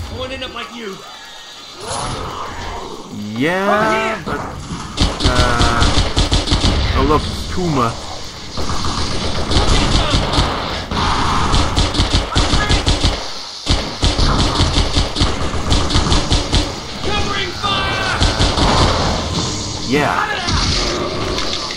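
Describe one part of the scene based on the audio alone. Alien creatures screech and chatter in high voices.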